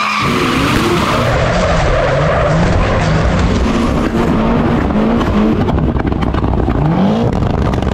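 A car engine roars and revs loudly nearby.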